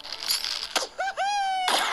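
A cartoon bird squawks as it flies.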